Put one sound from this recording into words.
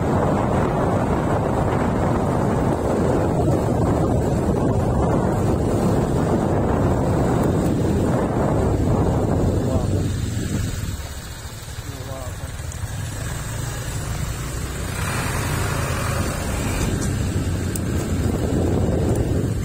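Wind rushes and buffets loudly against the microphone outdoors.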